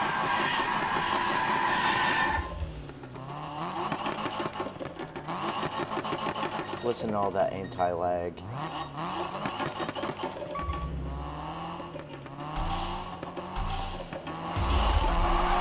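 A car engine revs up and down repeatedly while idling.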